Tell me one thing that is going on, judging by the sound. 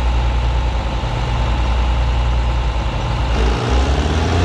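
A starter motor cranks a diesel tractor engine.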